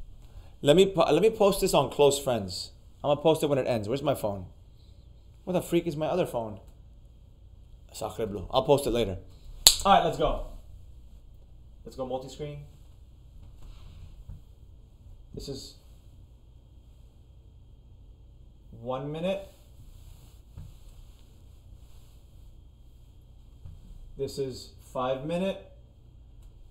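A man speaks calmly and clearly into a close microphone, in bursts with pauses.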